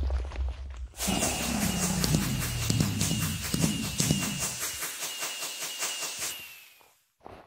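Fireworks pop and crackle in quick bursts.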